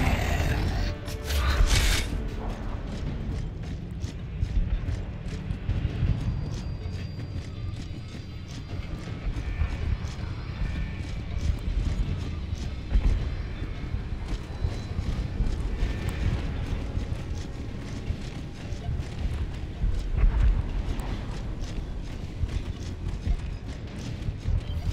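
Heavy armoured footsteps thud steadily on a hard floor.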